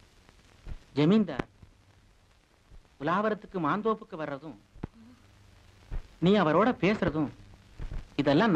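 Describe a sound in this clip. A young woman speaks with feeling.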